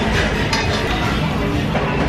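A spoon scrapes and clinks against a metal pan.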